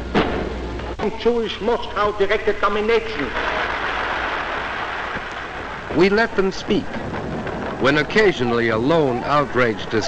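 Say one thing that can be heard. A man speaks forcefully into a microphone in a large echoing hall.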